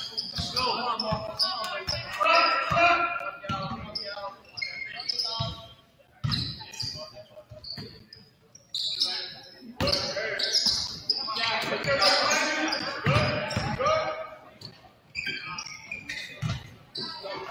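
A basketball bounces on a hard wooden court.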